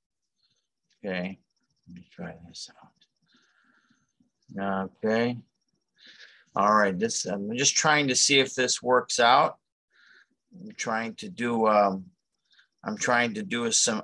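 A man speaks close to a microphone in an online call, with pauses.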